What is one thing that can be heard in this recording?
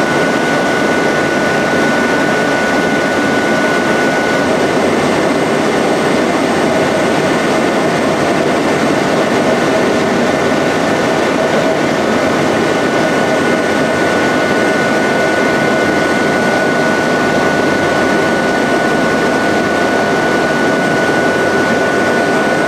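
A large industrial machine runs with a steady hum.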